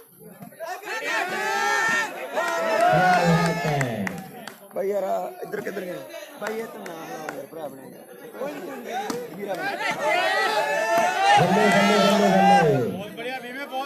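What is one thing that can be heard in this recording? A crowd of young men chants and shouts loudly outdoors.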